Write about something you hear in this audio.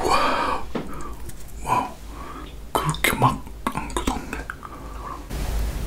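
A plastic bottle crinkles and squeaks as it is squeezed.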